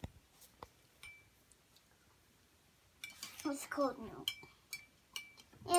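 A plastic spoon clinks against a cup.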